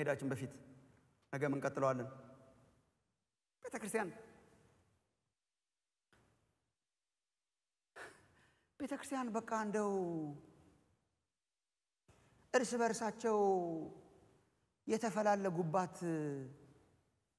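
A middle-aged man speaks with animation through a microphone, in bursts with pauses, in a large echoing hall.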